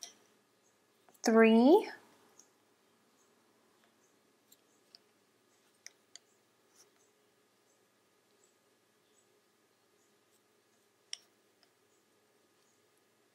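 Wooden knitting needles click and tap softly against each other.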